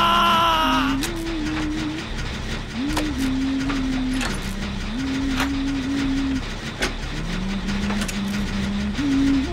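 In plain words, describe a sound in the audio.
A generator engine rattles and hums steadily.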